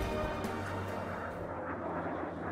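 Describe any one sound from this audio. A small propeller plane drones overhead.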